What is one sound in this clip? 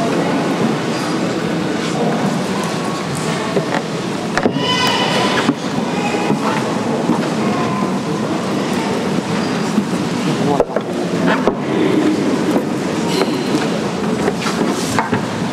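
An elderly man speaks quietly and briefly.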